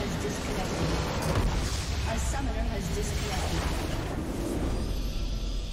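A huge structure explodes with a deep, rumbling boom.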